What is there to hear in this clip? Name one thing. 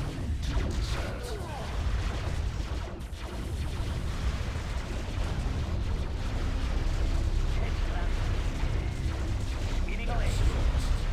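Explosions boom and rumble throughout.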